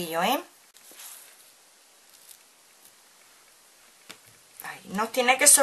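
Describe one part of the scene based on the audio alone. A strip of fabric trim rustles softly as it is handled.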